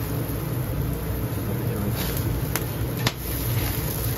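A metal spatula scrapes and clicks against a grill grate.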